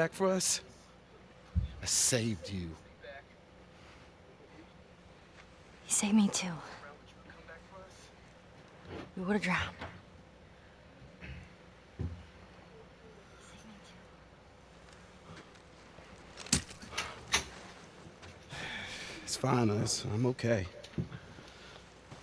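A young man speaks pleadingly, close by.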